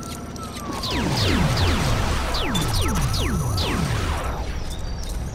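Rapid electronic zaps sweep downward in pitch.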